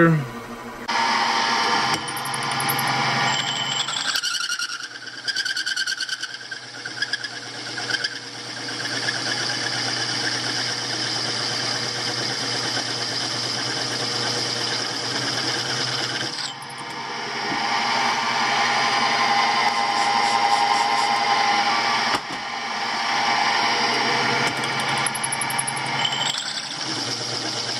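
A milling machine motor hums steadily.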